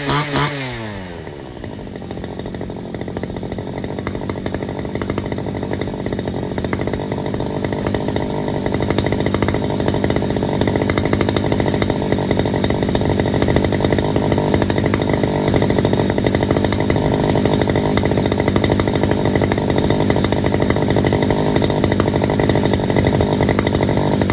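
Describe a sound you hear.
A small petrol engine idles with a steady, rattling putter, growing slightly louder.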